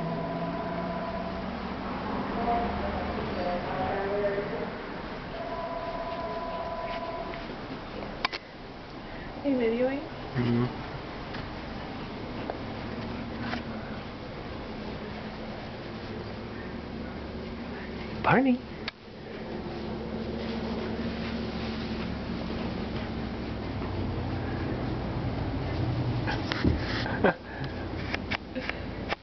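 A towel rustles and drags across wooden boards.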